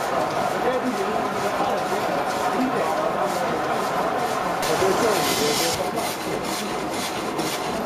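Belt-driven machinery whirs and rattles steadily.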